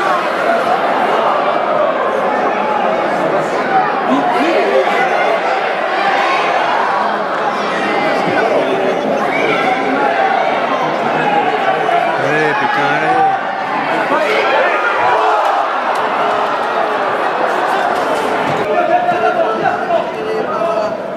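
A crowd of spectators murmurs and calls out in an open stadium.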